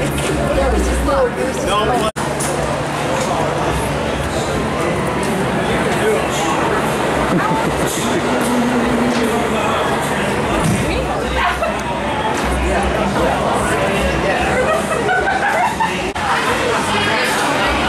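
A crowd of men and women chatter and laugh nearby outdoors.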